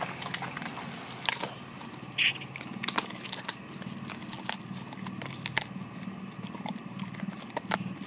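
A dog's teeth click and smack as it chews.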